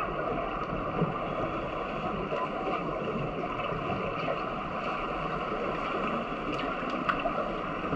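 Water rushes and bubbles steadily, heard from underwater.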